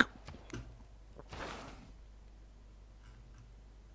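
A soft game menu sound plays as a menu opens.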